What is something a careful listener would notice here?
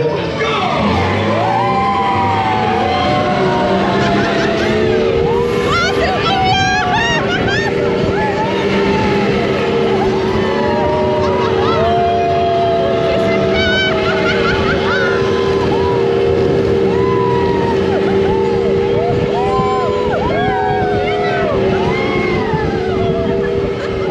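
Riders whoop and cheer.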